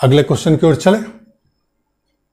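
A man speaks calmly and briefly into a nearby microphone.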